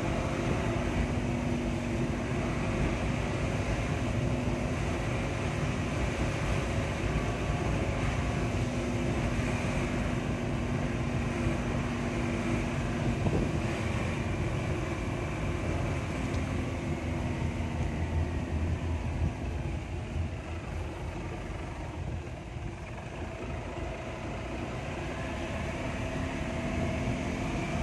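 Tyres rumble on a concrete road.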